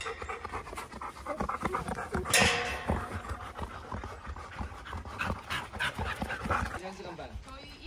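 Dogs run across grass outdoors.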